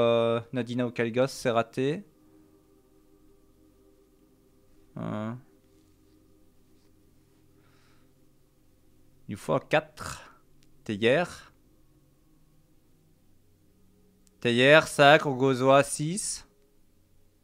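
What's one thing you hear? A man talks into a close microphone in short bursts, with animation.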